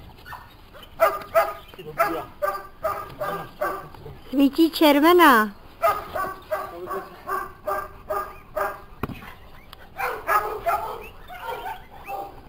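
A rottweiler barks with deep, sharp barks.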